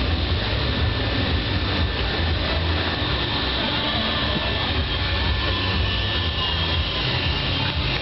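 A fairground ride whirls and rumbles loudly.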